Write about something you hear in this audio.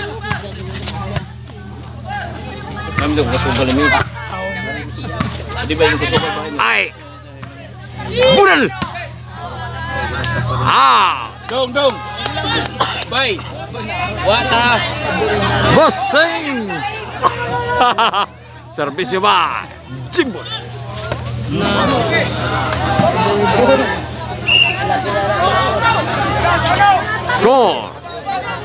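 A large outdoor crowd cheers and shouts.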